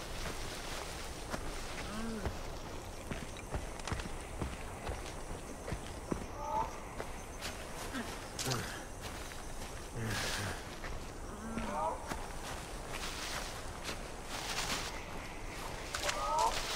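Footsteps rustle and crunch through dry grass and leaves.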